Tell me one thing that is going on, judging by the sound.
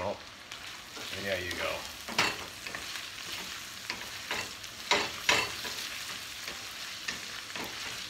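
A wooden spoon scrapes and knocks against a metal pan.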